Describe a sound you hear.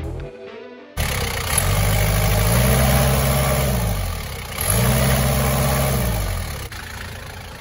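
An engine revs up and winds down twice, close by.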